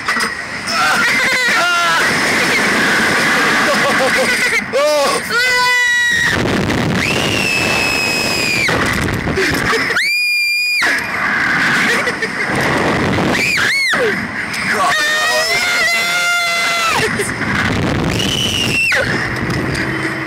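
A young girl screams shrilly, close by.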